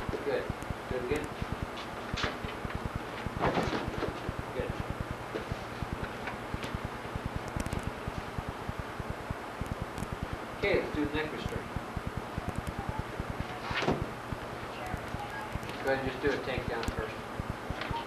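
A man speaks calmly in a bare, echoing room.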